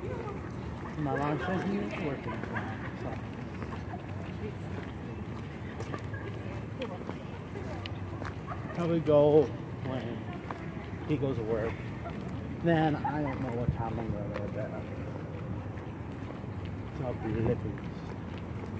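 Young women talk and laugh nearby outdoors.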